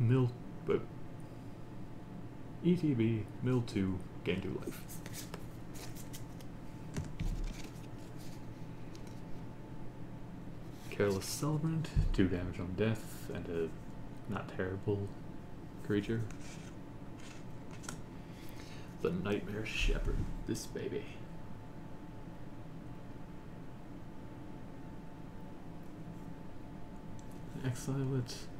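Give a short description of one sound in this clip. Playing cards rustle and slide as they are handled.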